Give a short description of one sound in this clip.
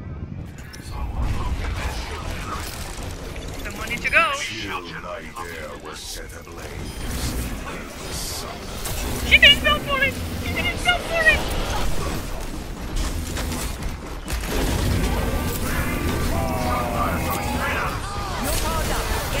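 Gunfire from a game rattles and booms.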